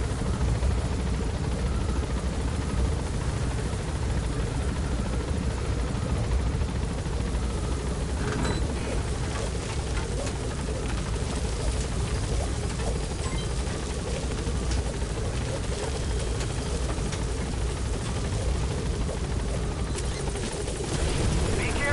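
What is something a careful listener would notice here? A helicopter's rotor thuds with a low, steady drone.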